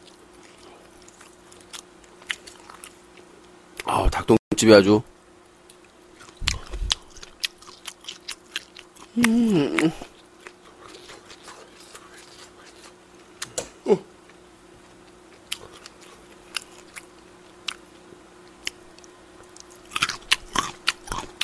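A young man chews and smacks his lips loudly close to a microphone.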